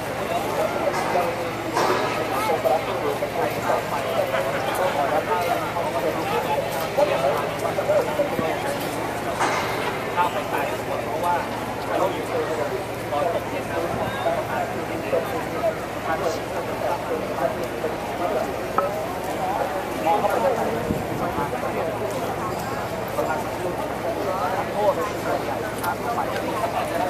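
A large crowd chatters steadily all around, outdoors in an open square.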